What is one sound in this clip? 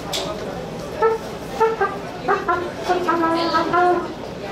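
A trumpet plays loud bright notes.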